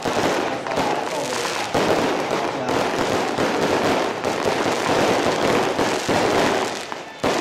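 Firecrackers crackle and pop rapidly outdoors.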